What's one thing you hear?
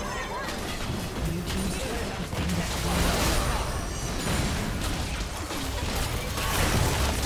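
Spell effects from a video game battle crackle and burst in quick succession.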